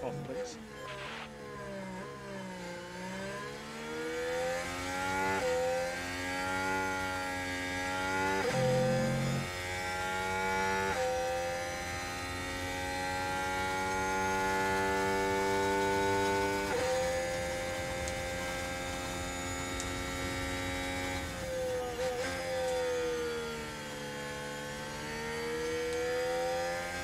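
A racing car engine screams at high revs, its pitch climbing and dropping with each gear change.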